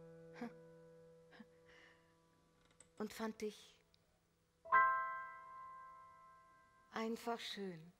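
A piano plays single sustained notes in a quiet hall.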